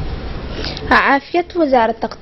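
A woman reads out the news through a microphone.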